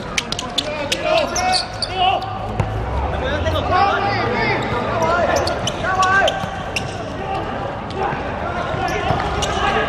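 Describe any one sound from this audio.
Men shout and call out to each other across an open court.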